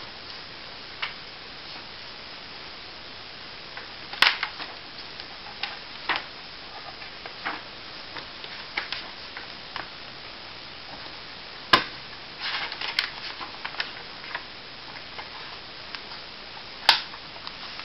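Paper pages rustle and flap as a book's pages are turned by hand.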